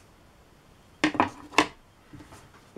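A plastic paint palette clatters as it is set down.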